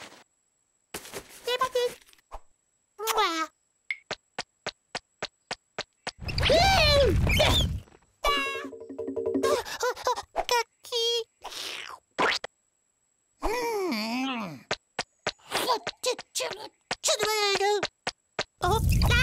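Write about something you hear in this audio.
A cartoon chick chirps and squeaks with high, expressive cries.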